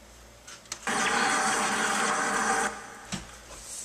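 A game plays a loud crackling burst of electricity.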